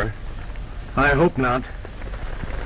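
A second man answers briefly.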